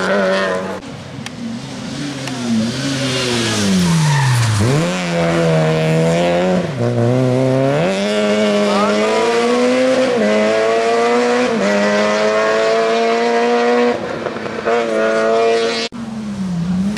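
A rally car's engine revs hard, shifting gears as the car speeds past and away.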